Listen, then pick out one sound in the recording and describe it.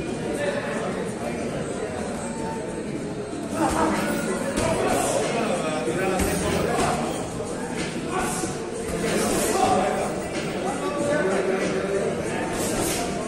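Sneakers squeak and shuffle on a canvas floor.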